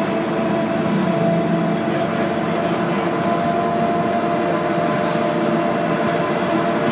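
Small electric fans whir steadily.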